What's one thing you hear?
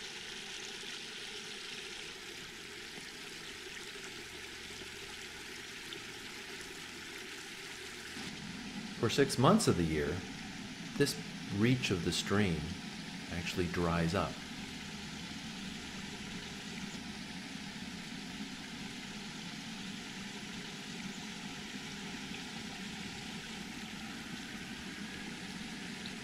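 A small stream trickles gently over logs and stones.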